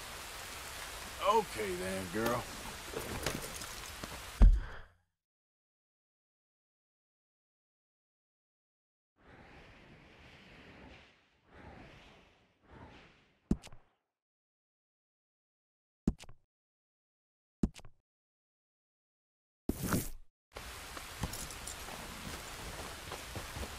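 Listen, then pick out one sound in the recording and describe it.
A horse's hooves thud on the ground.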